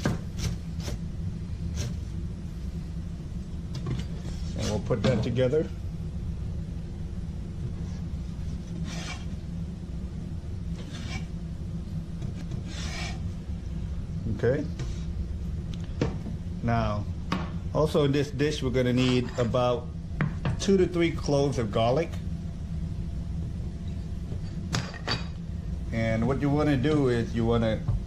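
A knife chops vegetables on a cutting board with quick taps.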